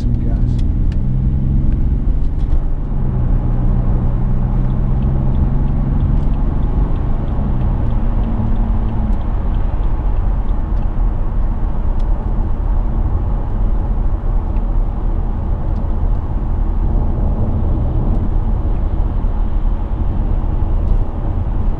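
Tyres roar on a motorway at speed.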